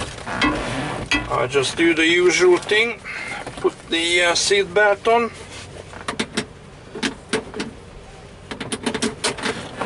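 A seat belt rattles and clicks as it is pulled and buckled.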